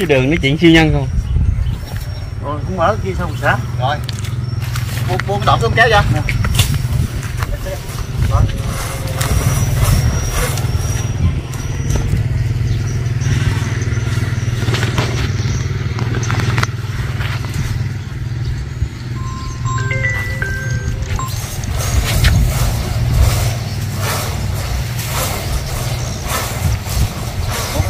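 A man's bare feet and hands scrape and thump against a tree trunk as he climbs.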